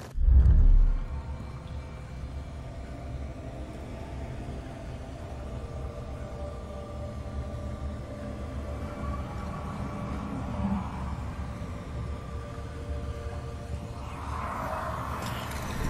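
Water rumbles and gurgles in a low, muffled drone.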